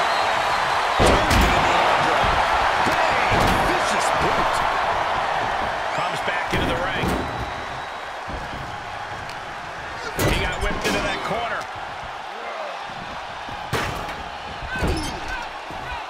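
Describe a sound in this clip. Heavy bodies thud onto a wrestling ring mat and the floor.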